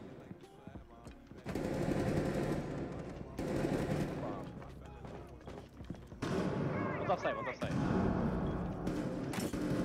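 A rifle fires several shots.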